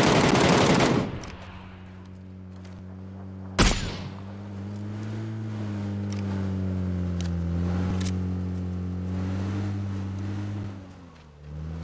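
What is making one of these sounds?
A vehicle engine hums steadily, then fades.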